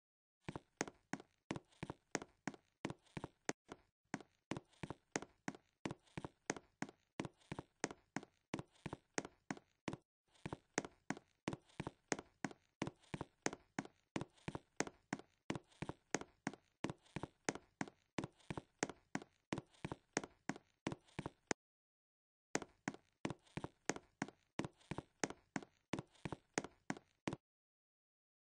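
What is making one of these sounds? Quick footsteps patter in a fast running rhythm.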